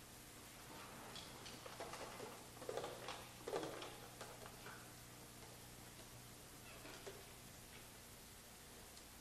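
A saxophone plays loose, squealing phrases in an echoing hall.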